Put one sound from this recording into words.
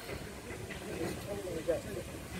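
Men talk quietly a short way off.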